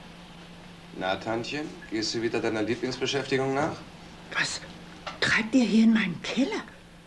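An elderly woman speaks tensely, close by.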